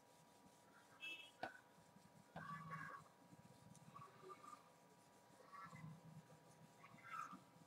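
An eraser rubs softly across a whiteboard.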